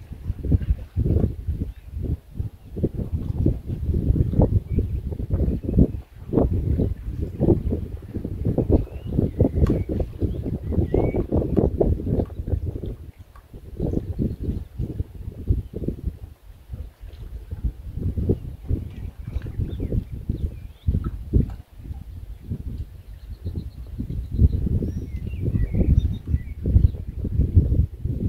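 Water laps gently against a jetty.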